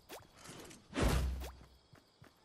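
A pickaxe strikes a wooden wall with a thud.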